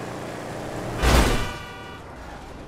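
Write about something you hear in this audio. A loud crash bursts out as a car hits a person.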